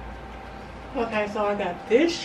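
A woman speaks with animation, close to the microphone.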